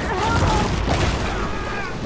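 Water sprays up in a burst as a shark bites.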